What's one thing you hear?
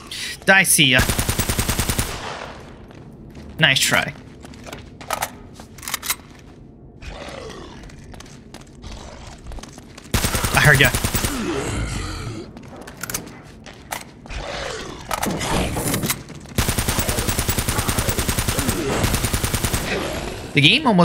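Rapid bursts of automatic gunfire ring out.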